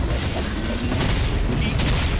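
Fiery explosions burst and crackle.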